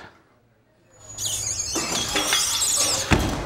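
A man slides down a metal pole with a rushing squeak.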